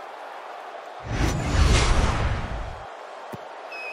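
A deep whoosh sweeps past and fades.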